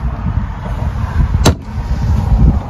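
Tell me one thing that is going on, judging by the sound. A wooden drawer slides shut with a knock.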